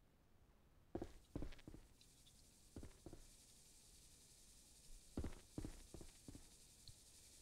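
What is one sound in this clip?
Boots thud on a wooden floor.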